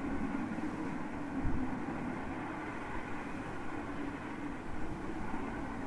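A steam train chugs far off in the wind.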